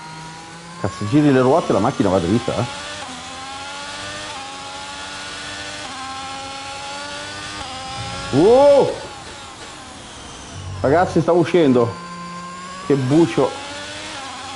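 A man speaks with animation into a nearby microphone.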